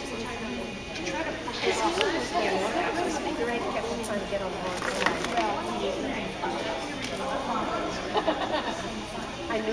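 A woman talks calmly nearby in a large echoing hall.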